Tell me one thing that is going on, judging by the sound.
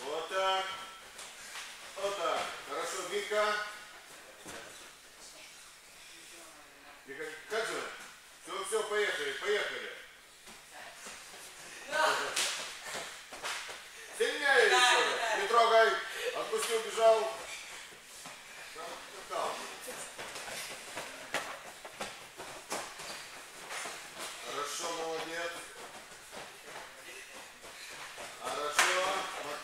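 Young men talk in a large echoing hall.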